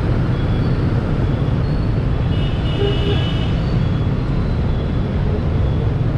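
Wind rushes loudly past a riding motorbike.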